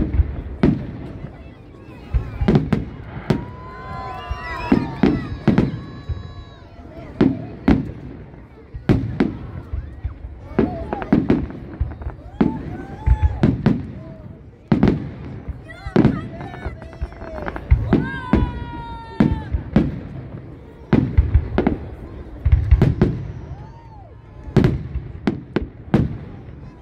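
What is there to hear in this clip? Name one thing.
Fireworks boom and crackle overhead in quick succession.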